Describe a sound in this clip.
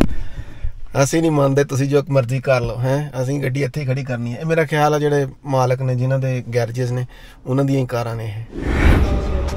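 A man speaks cheerfully in a sing-song voice close by.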